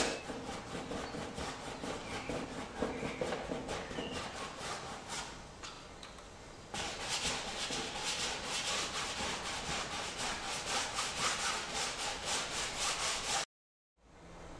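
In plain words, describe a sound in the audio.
A brush scrubs and scratches across canvas.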